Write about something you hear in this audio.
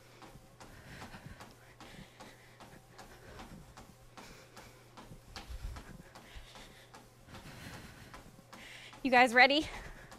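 Feet pound steadily on a running treadmill belt.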